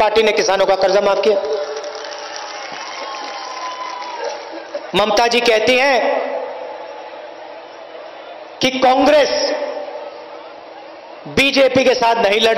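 A man gives a speech forcefully through a microphone, his voice echoing from loudspeakers outdoors.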